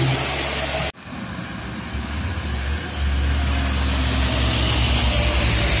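Car engines hum as cars pass by.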